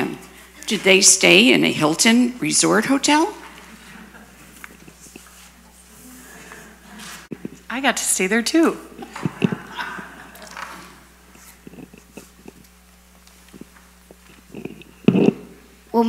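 A child reads aloud haltingly through a microphone, with pauses between lines.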